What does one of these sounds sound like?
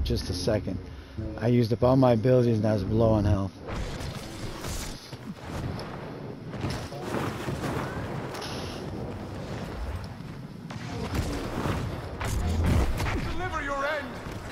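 Laser blasts crackle and zap in a battle.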